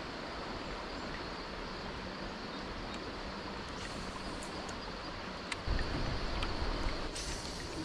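Water laps gently against a kayak hull.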